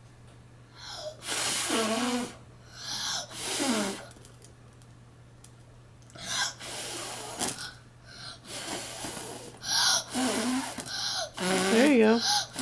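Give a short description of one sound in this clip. A young boy blows hard in repeated breathy puffs, up close.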